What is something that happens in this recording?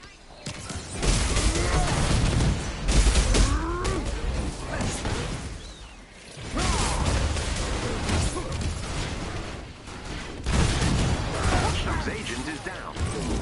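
Explosions and energy blasts boom loudly.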